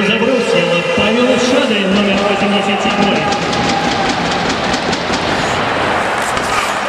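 Skates scrape and hiss across ice in a large echoing hall.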